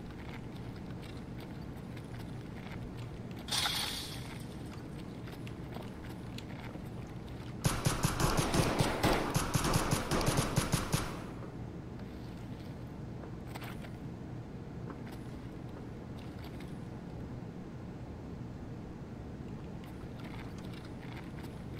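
Footsteps crunch over gravel and debris.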